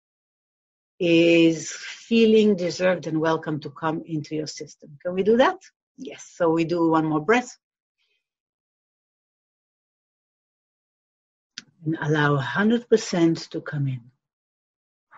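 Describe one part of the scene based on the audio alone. A middle-aged woman speaks expressively, close to the microphone.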